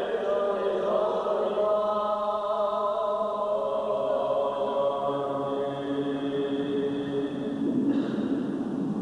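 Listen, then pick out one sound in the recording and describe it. An elderly man chants through a microphone in an echoing hall.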